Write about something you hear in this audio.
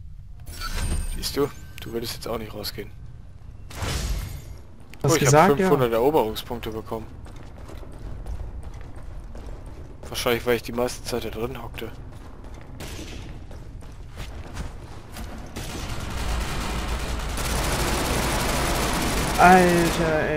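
Boots thud on a hard floor as a soldier runs.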